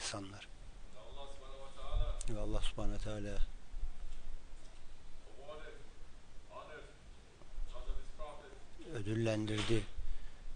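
A man speaks to a gathering through a microphone in an echoing hall, with pauses between phrases.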